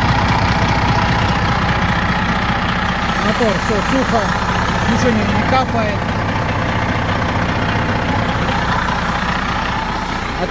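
A large diesel engine idles with a steady, deep rumble close by.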